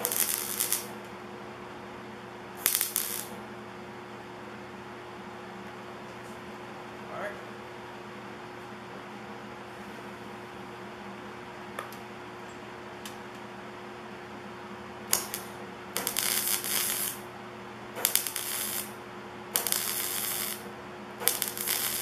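A welder crackles and buzzes in short bursts.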